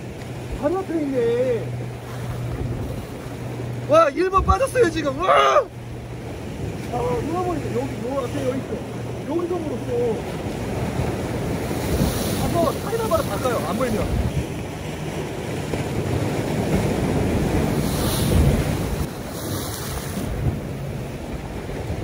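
Waves splash against the shore.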